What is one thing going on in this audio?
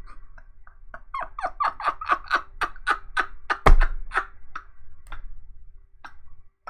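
A young man laughs loudly close to a microphone.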